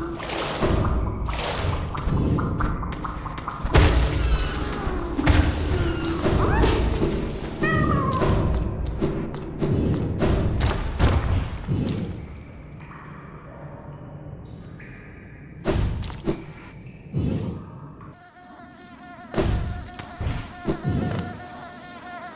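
Game sound effects thump and whoosh.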